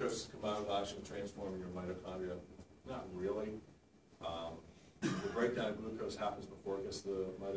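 A man lectures calmly in a slightly echoing room.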